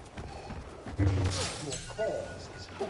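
A lightsaber hums and swings through the air.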